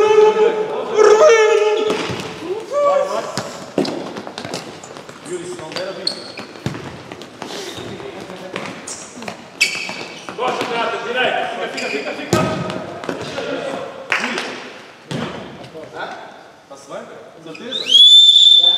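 A ball thuds as players kick it in an echoing hall.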